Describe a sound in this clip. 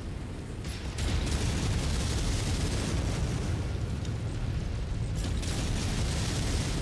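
Weapons fire in rapid bursts with crackling blasts.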